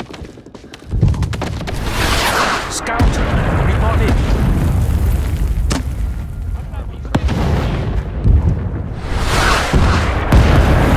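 A heavy explosion booms and rumbles.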